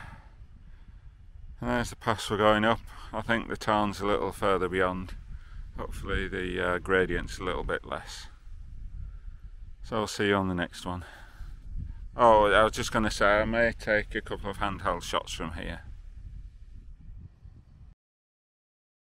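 Wind rumbles across an open hillside.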